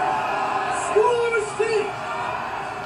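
A man calls out in long, drawn-out cries.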